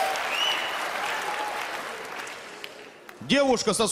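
A large audience laughs.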